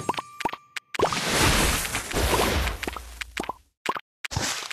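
A game blast whooshes and crackles loudly.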